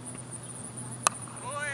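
A cricket bat strikes a ball with a sharp crack in the distance.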